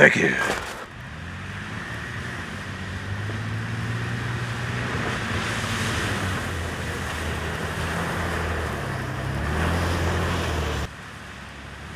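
A car engine hums steadily as a vehicle drives past.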